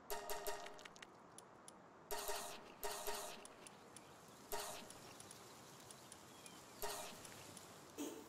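Short chiming blips sound as menu items are selected.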